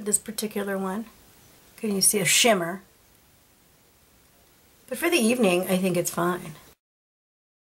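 A middle-aged woman talks calmly close to a microphone.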